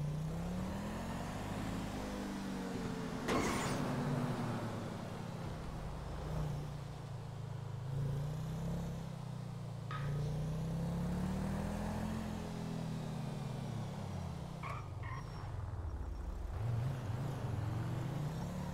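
A car engine revs up and down as it speeds along.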